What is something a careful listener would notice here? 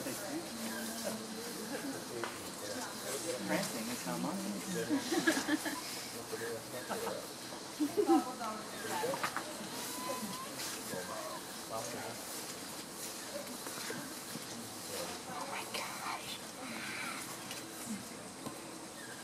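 Leaves and branches rustle as a monkey climbs through a tree.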